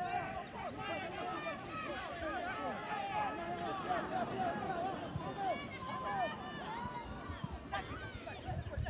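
Young men shout to each other from a distance across an open field.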